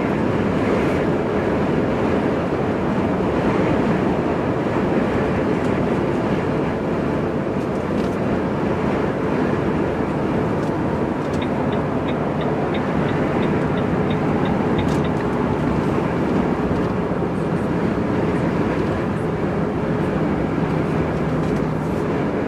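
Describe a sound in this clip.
Tyres roar on a motorway road surface.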